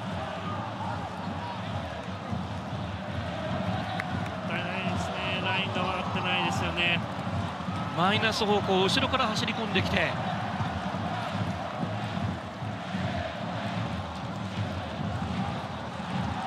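A large crowd murmurs and chants steadily in an open stadium.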